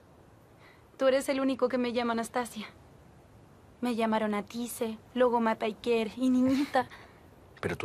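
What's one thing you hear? A young woman speaks softly and pleadingly, close by.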